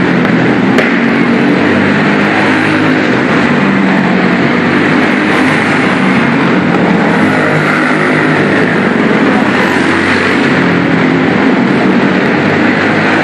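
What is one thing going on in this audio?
A small racing car engine roars loudly around a dirt track in a large echoing hall.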